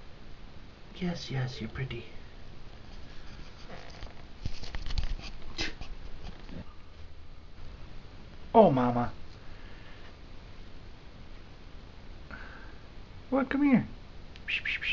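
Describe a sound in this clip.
A cat meows loudly up close, several times.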